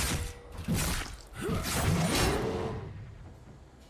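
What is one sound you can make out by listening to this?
Magic spell effects whoosh and crackle in a video game.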